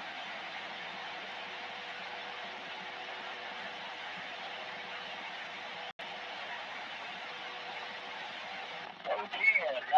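Steady static hisses from a radio loudspeaker.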